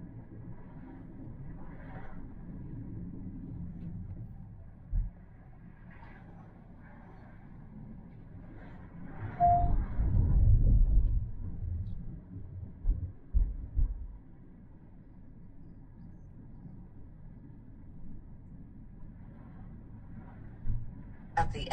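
A man talks calmly nearby inside a car.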